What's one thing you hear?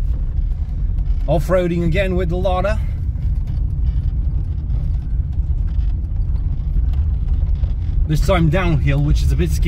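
A car engine rumbles steadily while driving.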